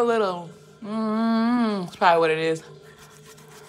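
A young woman hums loudly close by.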